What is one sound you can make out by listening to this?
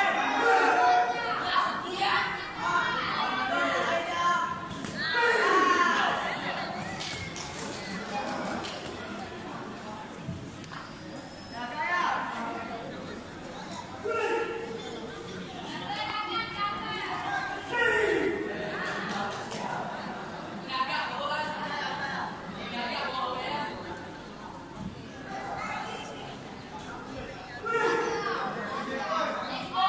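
Young men and women shout sharply as they strike, echoing in a large hall.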